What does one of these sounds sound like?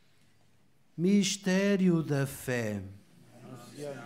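A man chants loudly into a microphone in a large echoing hall.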